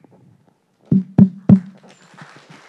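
A microphone knocks and thumps loudly.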